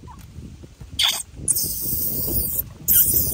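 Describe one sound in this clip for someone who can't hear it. A baby monkey squeals shrilly.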